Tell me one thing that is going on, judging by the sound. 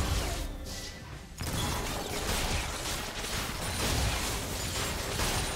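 Battle sound effects crackle and whoosh as spells are cast in a fight.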